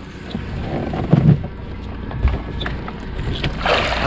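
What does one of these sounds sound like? Water splashes as a net is pulled from it.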